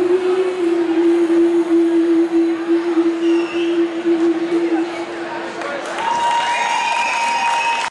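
A young woman sings a long, held note into a microphone.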